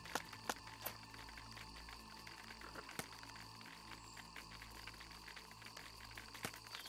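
Soft game menu clicks sound as selections change.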